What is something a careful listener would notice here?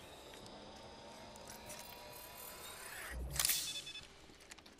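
A syringe injects with a short hiss and click.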